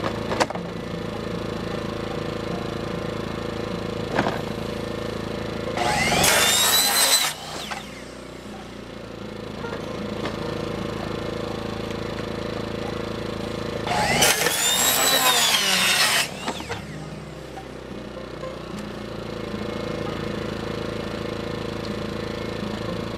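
A small generator hums steadily nearby.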